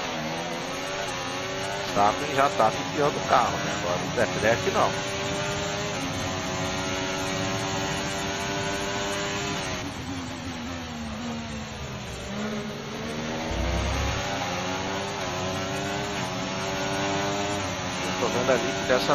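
A racing car engine screams at high revs, its pitch rising and dropping as it speeds up and brakes.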